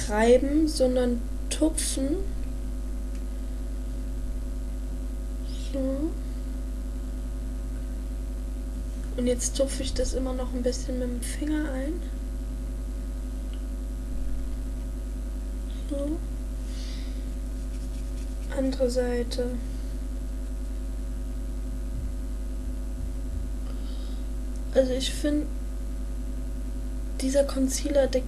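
A young woman talks quietly and close by, pausing often.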